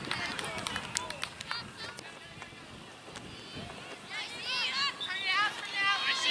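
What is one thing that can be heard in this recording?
Young girls shout and call out across an open field outdoors.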